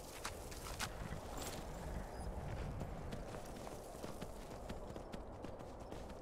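Hooves thud on snow as a horse walks.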